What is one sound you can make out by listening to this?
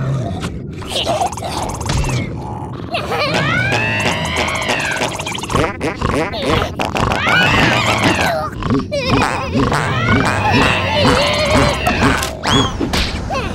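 Bodies thump and bump against cardboard walls.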